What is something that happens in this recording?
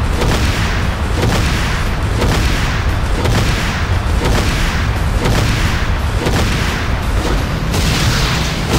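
A tank's engine rumbles steadily.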